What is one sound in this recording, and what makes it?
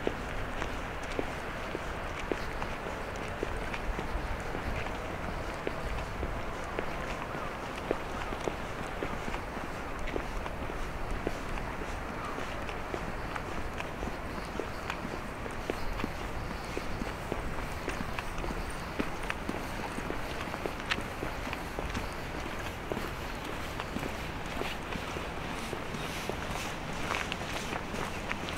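Footsteps crunch and scuff steadily on a dry path.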